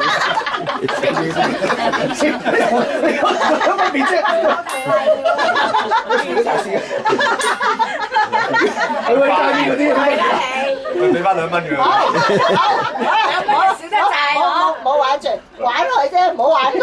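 Several adults talk together close by.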